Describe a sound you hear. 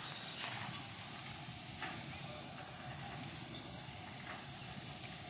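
Monkeys scamper across a tin roof with light, soft thumps.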